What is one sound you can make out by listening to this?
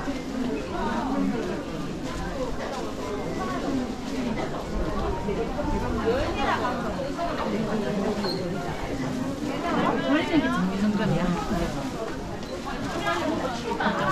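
Many people chatter in a busy indoor hall.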